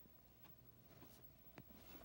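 A button on a plastic remote clicks as a thumb presses it.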